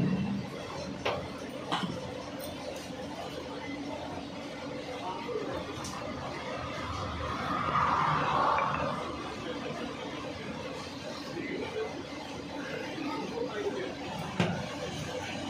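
Metal tongs clink against a metal pot.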